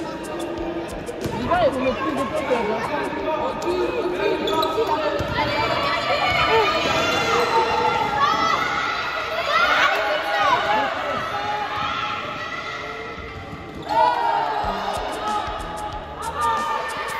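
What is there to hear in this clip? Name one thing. Basketball shoes squeak sharply on the court.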